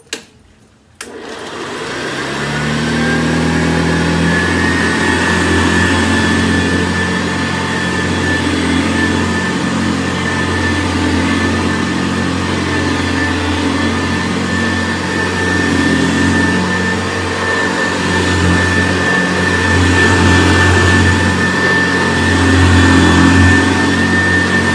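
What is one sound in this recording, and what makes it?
A vintage upright vacuum cleaner motor winds up and runs with a steady whine.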